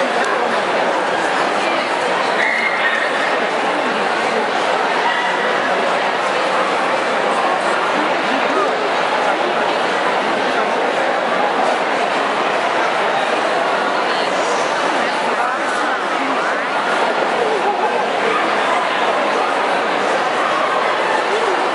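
A large crowd murmurs and chatters steadily in a big echoing hall.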